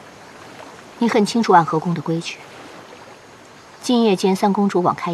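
A woman speaks calmly and coldly, close by.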